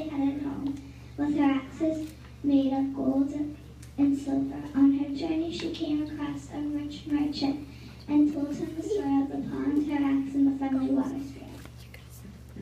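A child speaks clearly and with expression in a large echoing room.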